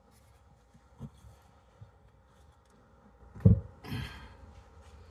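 Metal parts knock and clink as a small engine is handled.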